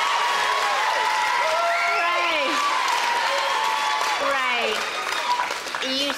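A large audience cheers and screams loudly in an echoing hall.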